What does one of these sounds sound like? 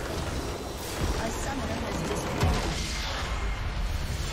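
A video game's base crystal explodes with a booming blast.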